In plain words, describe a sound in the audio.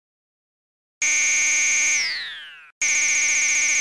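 A steady high electronic tone buzzes while a video game tallies points, then drops in pitch and fades.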